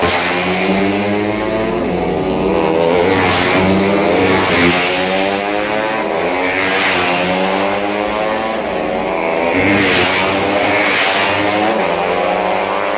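A racing engine revs loudly nearby.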